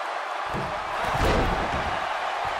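A body slams heavily onto a wrestling ring mat.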